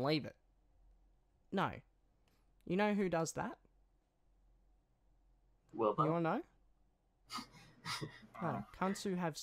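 A young man talks with animation into a microphone, in short bursts with pauses.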